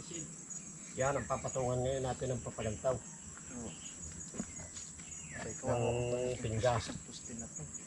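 A man talks loudly outdoors, some distance away.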